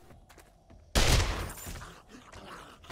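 A wooden crate is opened with a rustling thud.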